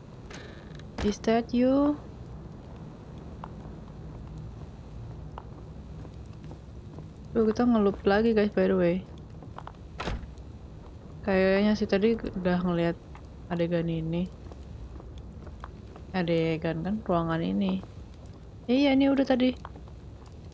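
A young woman speaks in short bursts close to a microphone, with animation.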